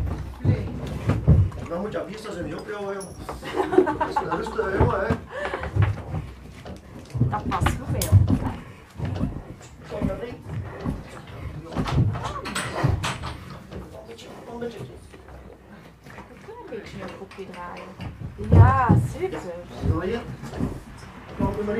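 A horse's hooves knock on a hard floor.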